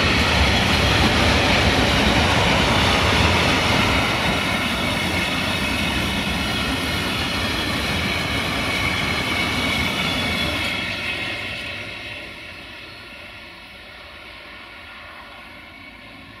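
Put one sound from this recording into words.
Metal train wheels squeal and screech against the rails.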